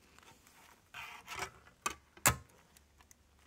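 A disc clicks into place in a portable CD player.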